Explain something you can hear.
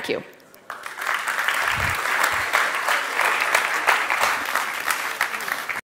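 An audience claps and applauds in a large hall.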